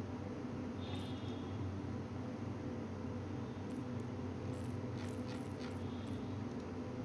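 Soft electronic interface chimes and clicks sound.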